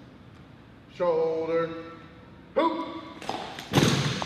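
A young man shouts a long, drawn-out drill command.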